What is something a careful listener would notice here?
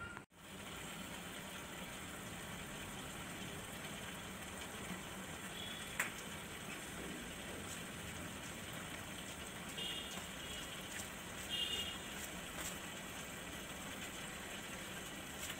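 A filter pump hums steadily.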